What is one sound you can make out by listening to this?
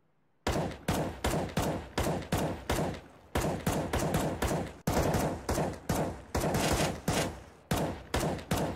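Rifle shots fire in quick bursts, echoing off hard walls.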